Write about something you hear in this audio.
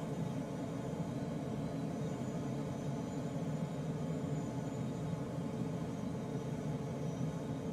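Air rushes steadily past a glider's canopy.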